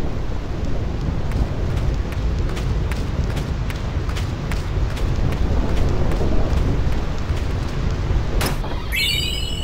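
Footsteps tap steadily across the ground.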